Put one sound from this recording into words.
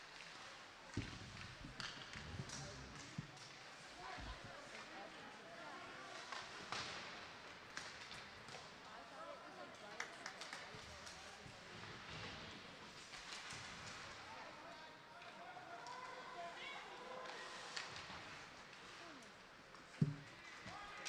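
Sticks clack against a puck.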